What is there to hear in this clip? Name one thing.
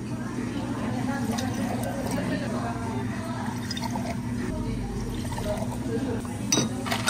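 Water pours and splashes into a glass jar.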